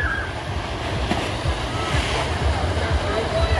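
A child splashes into a pool.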